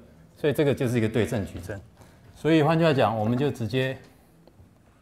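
A man speaks calmly through a microphone, as if lecturing.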